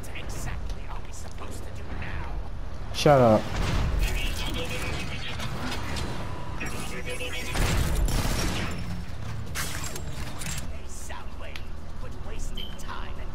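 Heavy metallic footsteps clank as a large robot walks.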